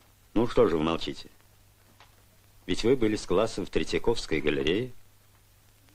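An elderly man speaks slowly and sternly.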